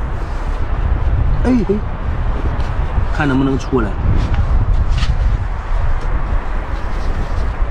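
Salt shakes out of a plastic bottle onto wet sand.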